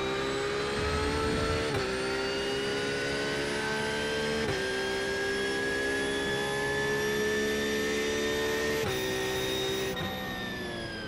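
A racing car engine roars loudly, climbing in pitch through quick gear changes.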